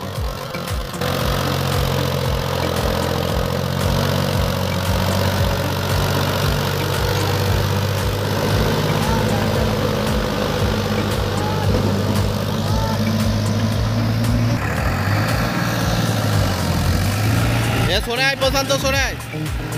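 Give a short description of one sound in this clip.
A tractor engine labours and roars as it pulls a loaded trailer through mud.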